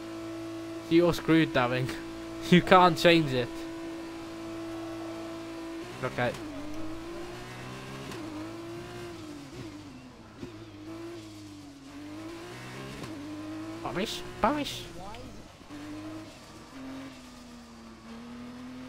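A racing car engine roars and whines, its pitch rising and falling as it speeds up and slows down.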